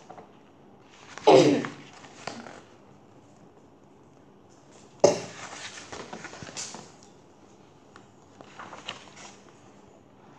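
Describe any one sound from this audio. Book pages rustle and flap as they turn.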